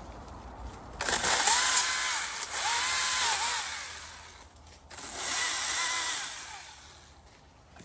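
A battery chainsaw whirs in short bursts as it cuts through woody stems.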